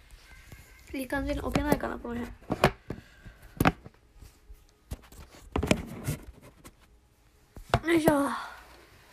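Handling knocks and bumps sound close to a phone microphone.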